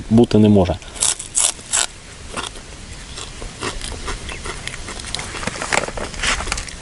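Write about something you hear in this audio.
A man chews and bites into food.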